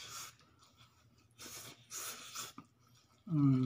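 A young man slurps noodles loudly.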